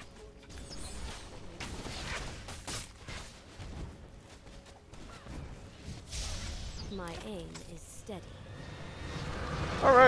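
Spells and weapons clash and crackle in a game battle.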